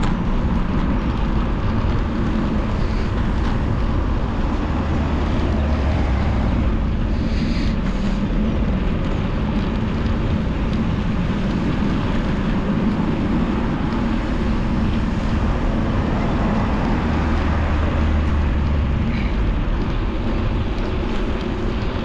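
Wind rushes and buffets against the microphone while riding outdoors.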